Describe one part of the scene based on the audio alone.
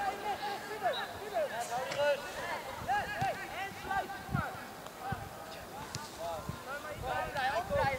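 Young players shout and call to each other outdoors on an open field.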